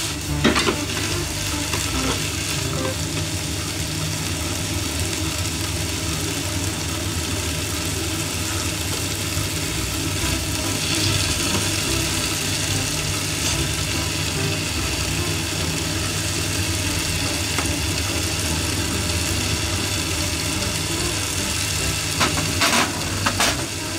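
Vegetables sizzle steadily in a frying pan.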